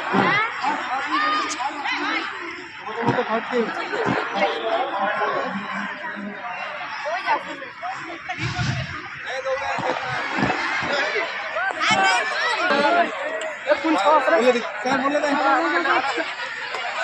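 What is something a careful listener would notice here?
Girls and young men chatter nearby outdoors.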